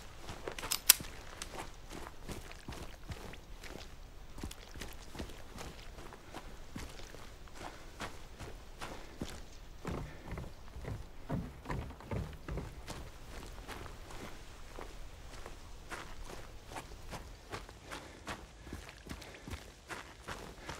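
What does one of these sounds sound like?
Footsteps crunch on gravel at a steady walking pace.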